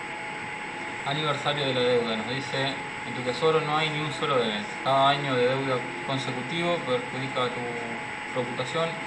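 A young man talks calmly and close to a microphone.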